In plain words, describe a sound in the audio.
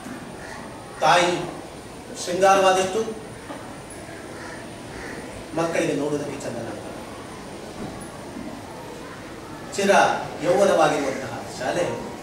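A man speaks in short bursts through a loudspeaker.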